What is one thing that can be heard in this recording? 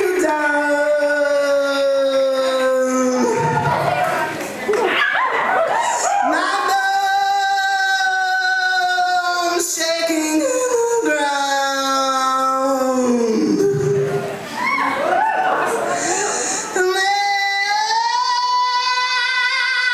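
A live band plays along.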